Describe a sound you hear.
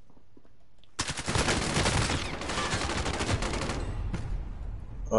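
Gunfire rattles in rapid bursts at close range.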